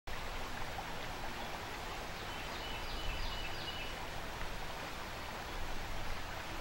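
River water rushes and churns over rocks.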